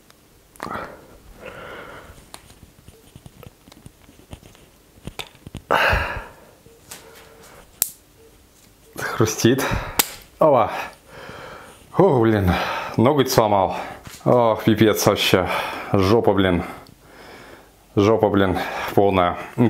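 Hands handle a small microphone with soft clicks and rustles.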